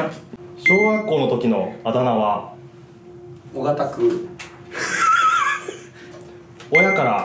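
Two young men laugh close by.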